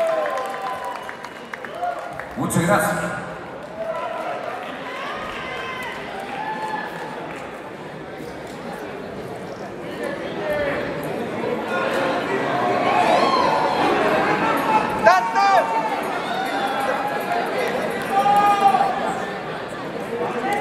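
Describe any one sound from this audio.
A rock band plays loudly in a large hall.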